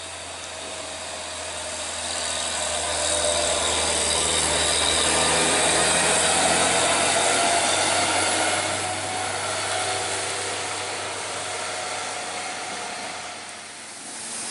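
A heavy truck engine rumbles and drones as the truck drives slowly past.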